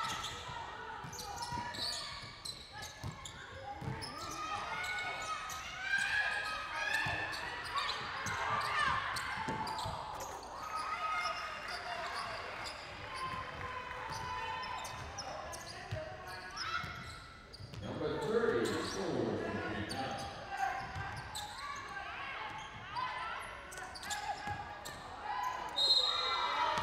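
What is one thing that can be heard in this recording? A basketball bounces on a wooden floor with a thud.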